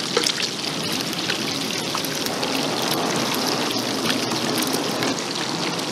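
Eggs sizzle and crackle loudly in hot oil.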